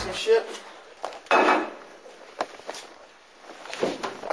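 Objects knock and clatter sharply.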